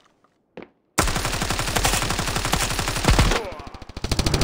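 Rapid rifle fire rattles loudly in a fast burst.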